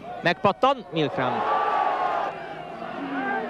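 A crowd cheers and roars in a stadium.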